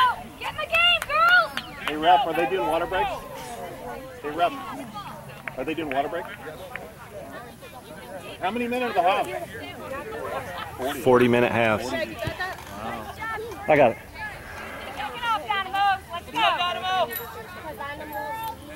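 Young women shout and call to each other across an open field outdoors.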